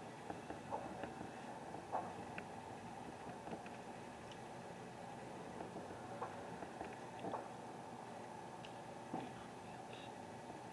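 Hammers knock on wood at a distance, now and then.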